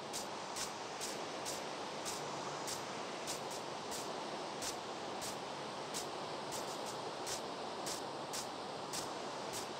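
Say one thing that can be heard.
Rain falls steadily and hisses.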